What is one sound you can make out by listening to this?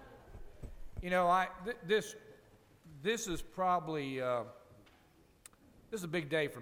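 A middle-aged man speaks into a microphone over a loudspeaker in a large echoing hall.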